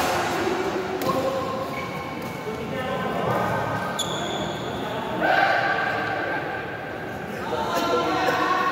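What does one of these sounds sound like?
A racket strikes a shuttlecock with sharp pops.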